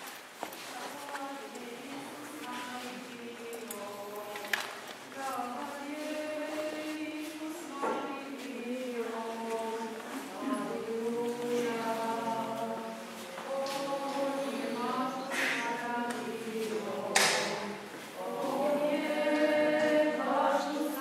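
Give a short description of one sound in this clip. Men chant together slowly in a large, echoing hall.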